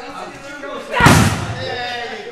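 A fist thumps hard against a punching pad.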